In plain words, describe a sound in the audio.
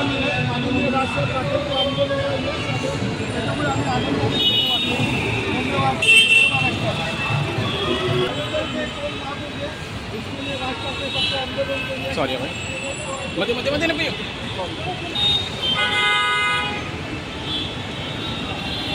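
Several voices talk over each other outdoors.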